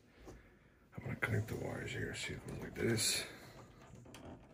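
A plastic drive bracket clicks and rattles as hands handle it.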